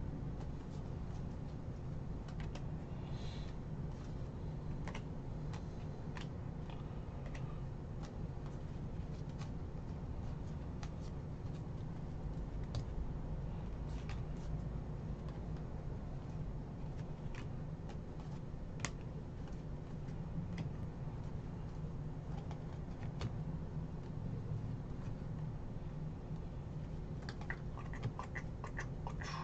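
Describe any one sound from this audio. Trading cards flick and slide against each other as they are sorted by hand.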